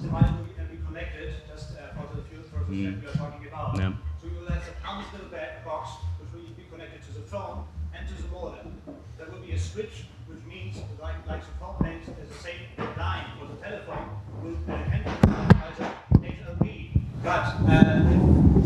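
A man speaks calmly into a microphone, heard through a loudspeaker.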